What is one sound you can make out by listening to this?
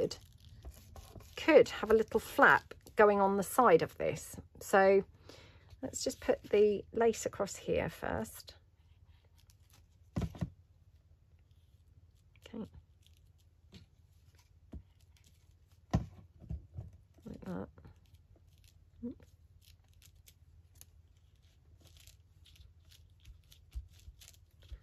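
Paper crinkles and rustles softly under hands.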